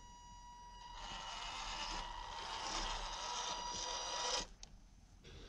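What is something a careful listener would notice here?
A small electric motor whines as a toy truck drives closer.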